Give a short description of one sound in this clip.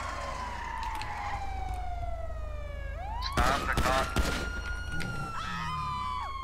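A police siren wails and shifts in pitch.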